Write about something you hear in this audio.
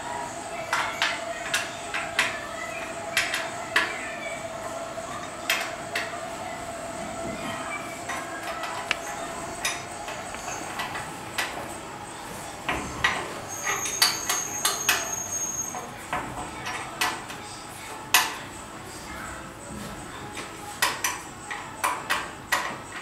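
Metal parts click and clank sharply.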